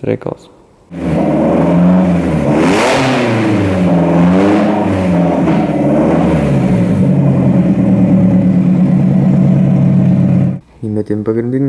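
A car engine runs loudly, its revs rising and falling.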